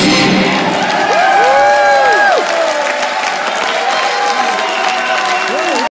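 A band plays music on stage.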